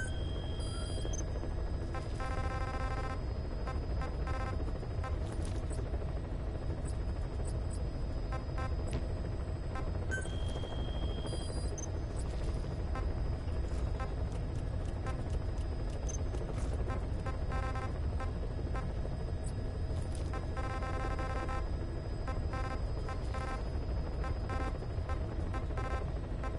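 A helicopter engine rumbles steadily in the background.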